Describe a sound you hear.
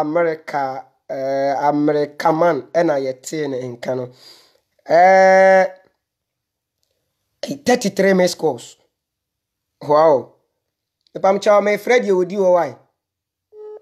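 A young man speaks close up, with animation.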